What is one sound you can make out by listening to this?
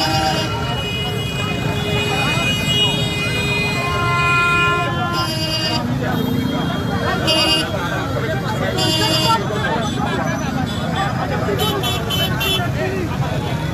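Motorbike horns honk repeatedly.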